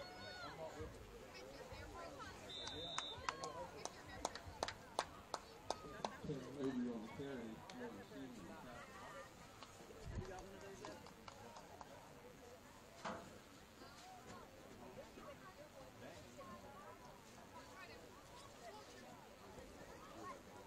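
A crowd of people chatters and cheers outdoors at a distance.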